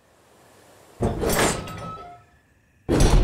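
A heavy iron gate creaks and swings open.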